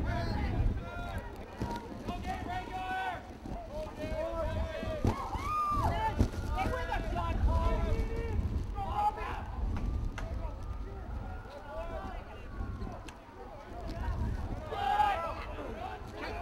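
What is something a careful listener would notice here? Young men shout across an outdoor field.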